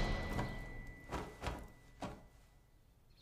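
Bedding rustles as a man shakes out a quilt.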